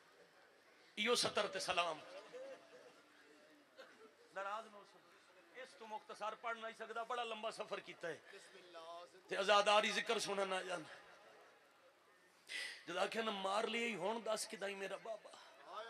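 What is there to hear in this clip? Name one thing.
A man speaks with passion into a microphone, heard through loudspeakers with echo.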